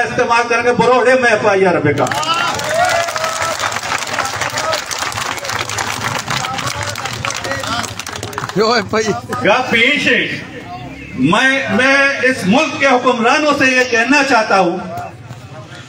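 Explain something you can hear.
A man gives a loud, animated speech through a microphone and loudspeakers outdoors.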